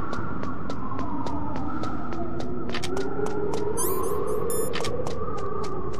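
Running footsteps clang on metal stairs.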